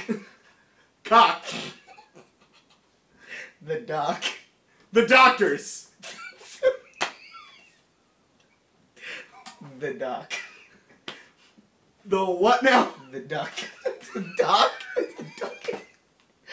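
Another young man laughs loudly nearby.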